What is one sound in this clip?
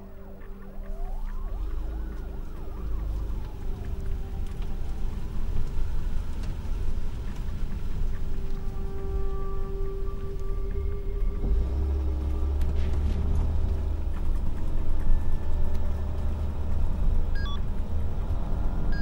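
A car engine rumbles low, heard from inside the car.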